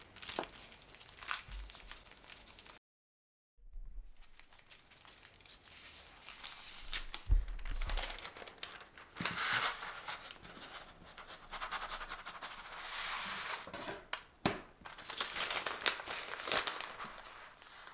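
Parchment paper rustles and crinkles as it is rolled.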